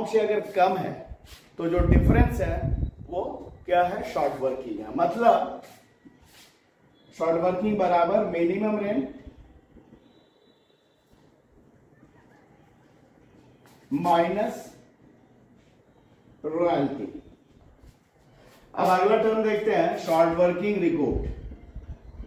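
A middle-aged man lectures calmly and clearly, close by.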